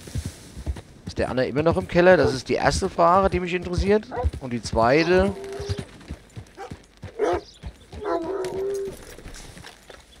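A horse's hooves clop on a dirt road.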